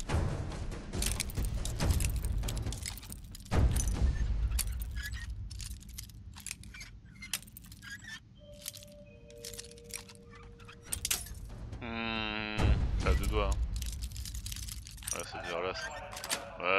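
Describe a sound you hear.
A metal pick clicks and scrapes inside a lock.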